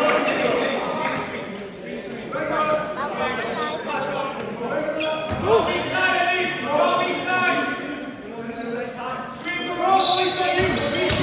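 Basketball players call out to each other in a large echoing hall.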